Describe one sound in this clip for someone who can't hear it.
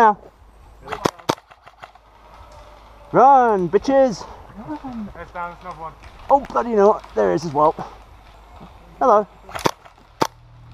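An airsoft gun fires sharp, snapping shots.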